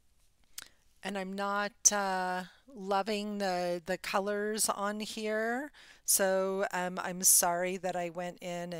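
A middle-aged woman talks calmly and close to a microphone.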